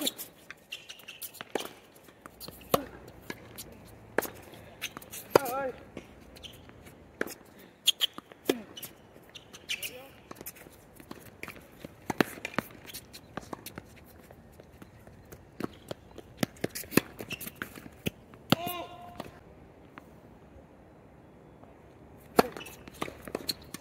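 Tennis shoes squeak and scuff on a hard court.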